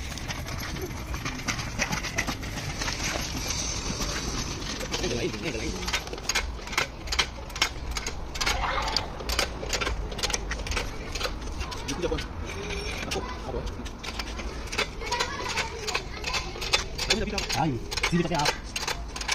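Metal chains and parts clank as an engine is lowered on a hoist.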